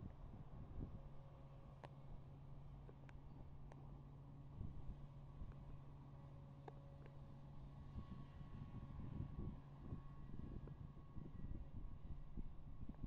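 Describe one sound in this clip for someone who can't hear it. A diesel locomotive engine hums steadily.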